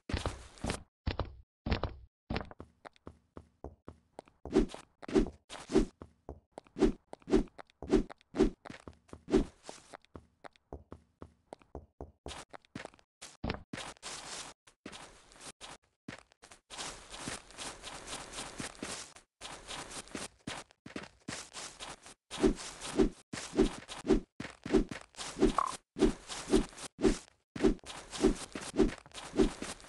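Footsteps thud on grass in a steady, quick rhythm.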